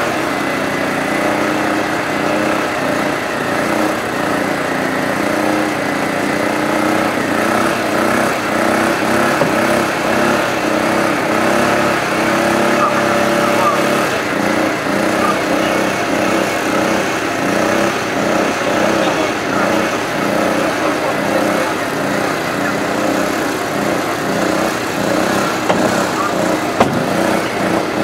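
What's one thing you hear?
A hydraulic rescue pump engine hums steadily close by.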